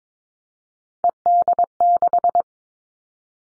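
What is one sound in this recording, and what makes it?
A Morse code tone beeps in quick short and long bursts.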